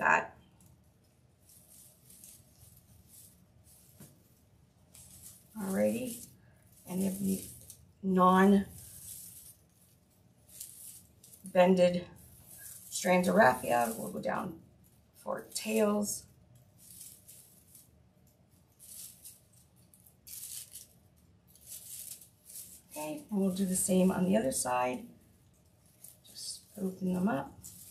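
Stiff ribbon and burlap rustle and crinkle as hands handle them.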